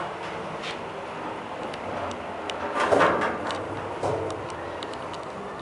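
An elevator hums and rumbles steadily as it moves.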